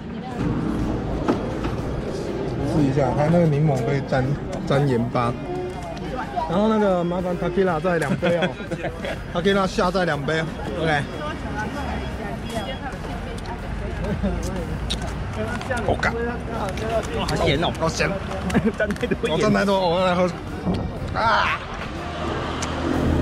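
Outdoor crowd chatter murmurs in the background.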